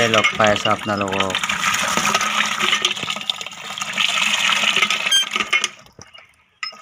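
Water gushes from a pipe into a bucket.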